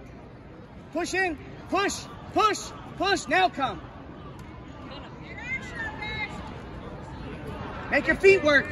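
A woman shouts encouragement loudly nearby, in short bursts.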